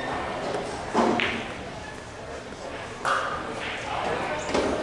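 Pool balls clack together on a table.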